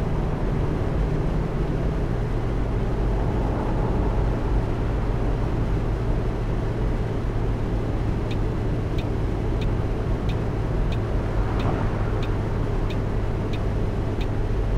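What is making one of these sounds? Tyres roll along a road with a steady rumble.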